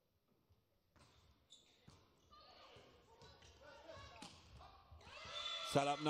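A volleyball is struck sharply during a rally in a large echoing hall.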